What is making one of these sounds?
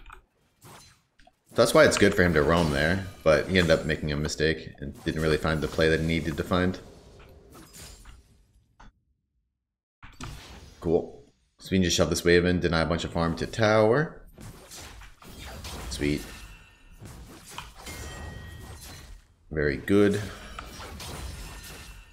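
Game spells and hits crackle and clash.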